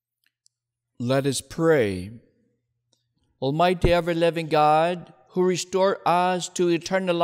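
A man chants prayers through a microphone in an echoing hall.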